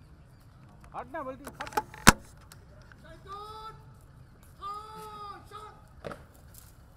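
A man shouts drill commands loudly outdoors.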